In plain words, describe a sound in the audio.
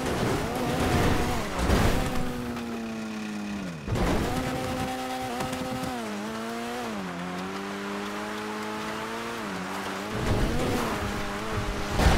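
Tyres crunch over loose dirt.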